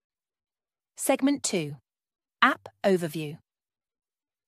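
A young woman speaks clearly and calmly into a microphone.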